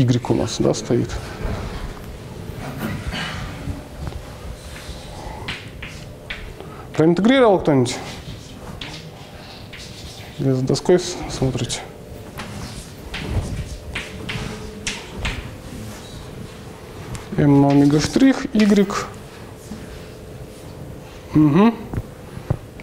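A young man speaks calmly, explaining.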